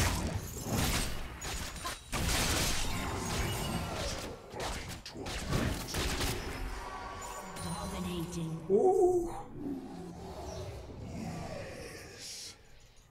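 Game spell effects whoosh and zap in quick bursts.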